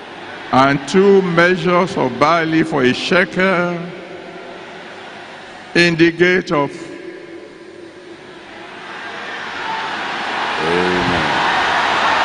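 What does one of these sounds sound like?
A man preaches loudly into a microphone, his voice echoing through a large hall.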